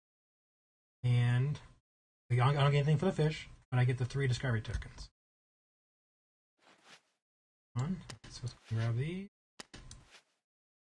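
A young man talks with animation into a close microphone, in short bursts with pauses.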